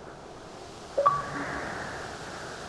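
A short notification chime sounds.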